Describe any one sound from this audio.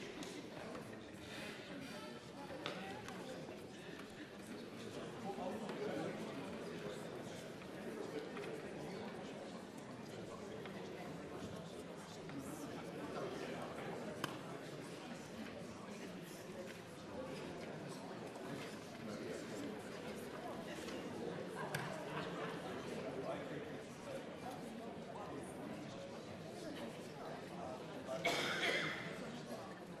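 An adult speaks steadily through a microphone, heard over loudspeakers in a large echoing hall.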